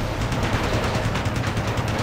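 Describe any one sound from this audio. An explosion booms in the distance.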